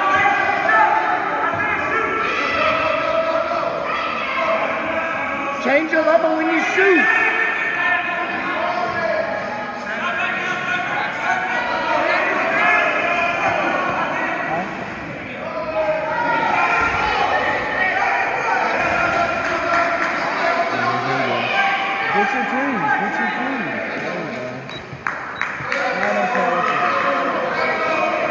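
A crowd of spectators shouts and cheers in an echoing gym.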